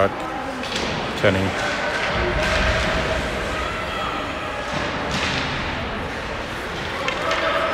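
Skates scrape and hiss across the ice in a large echoing rink.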